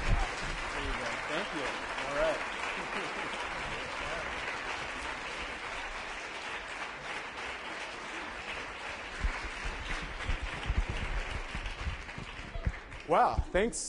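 A crowd of people murmurs and chatters.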